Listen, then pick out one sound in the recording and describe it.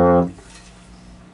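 A euphonium plays a low, steady note that cuts off.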